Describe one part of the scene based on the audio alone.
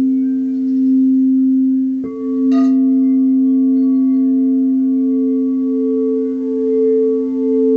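Crystal singing bowls ring with a steady, sustained hum.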